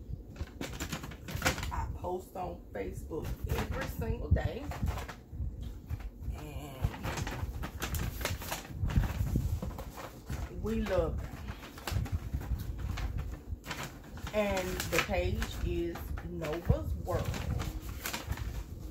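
Paper gift bags rustle and crinkle.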